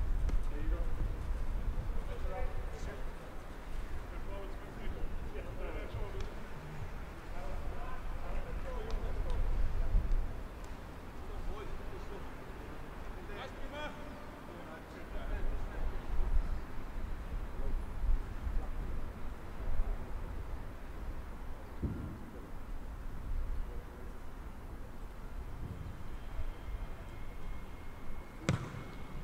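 Wind rumbles across an open outdoor field.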